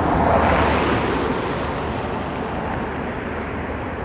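A car passes close by and fades away.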